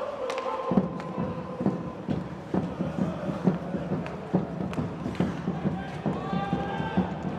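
A crowd chants and cheers in a large echoing arena.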